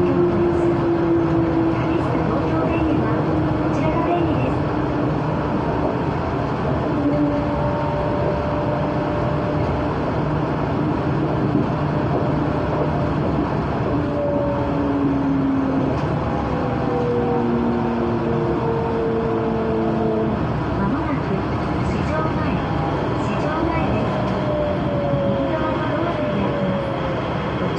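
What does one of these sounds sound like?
A train's motor whines, its tones slowly gliding.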